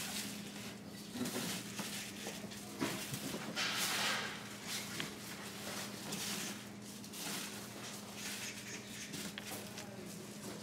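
Soft lumps of dough tumble and rustle in a wire mesh basket.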